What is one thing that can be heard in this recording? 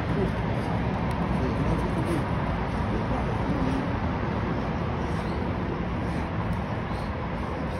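A young man shouts in distress at a distance.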